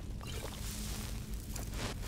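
Flames roar in a burst of fire.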